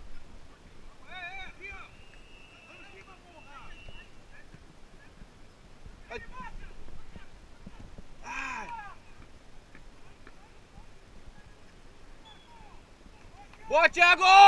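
Men shout across an outdoor pitch during a football game.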